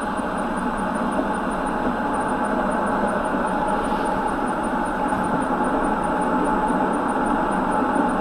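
A car drives steadily along a wet road, tyres hissing.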